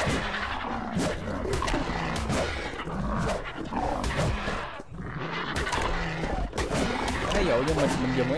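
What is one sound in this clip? A large beast screeches and growls.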